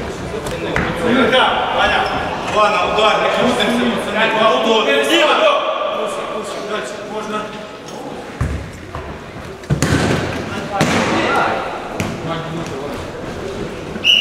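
Men shout and talk loudly in a large echoing hall.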